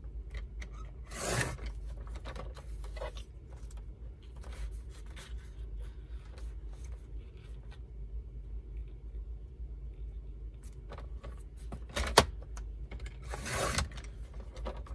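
A paper trimmer blade slides and slices through paper.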